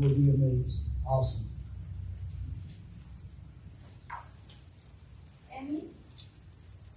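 A man chants briefly through a microphone in an echoing room.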